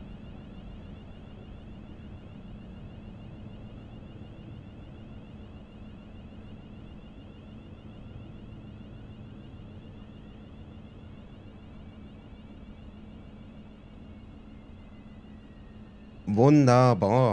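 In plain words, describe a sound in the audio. A train rumbles along the rails and slowly slows down.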